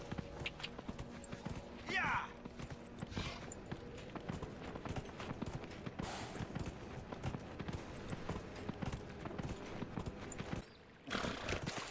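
A horse's hooves gallop steadily over the ground.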